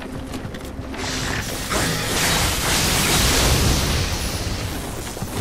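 Blades clash and slash in a fierce fight.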